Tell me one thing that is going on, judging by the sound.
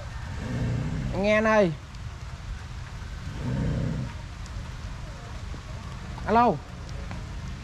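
A cow lows loudly nearby.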